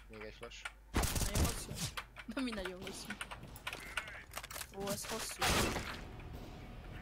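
Rifle shots crack in rapid bursts.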